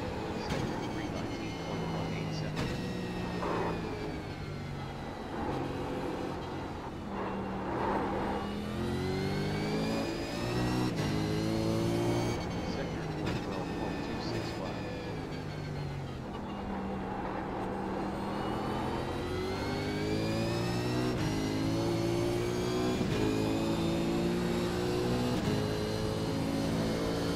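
A racing car engine revs high, climbing and dropping in pitch as it shifts gears.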